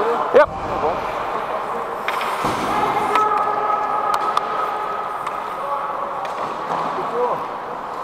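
Ice skates scrape across the ice in a large echoing rink.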